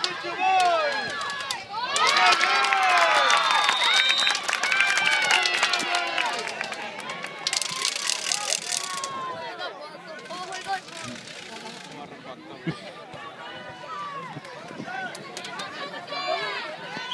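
A crowd of young spectators shouts and cheers outdoors.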